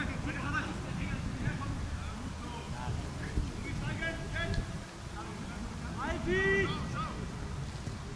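Men shout to each other across an open field.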